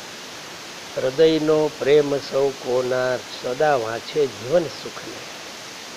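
An elderly man chants aloud in a steady voice nearby.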